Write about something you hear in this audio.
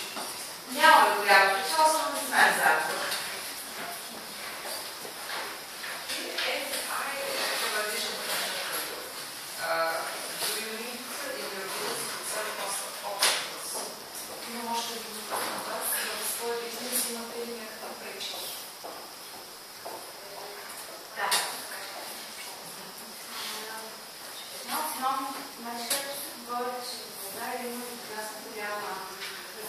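A woman speaks at a distance in a large echoing room.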